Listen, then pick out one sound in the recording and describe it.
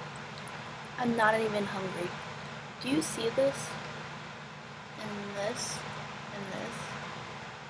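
A young woman speaks casually and close up, with pauses.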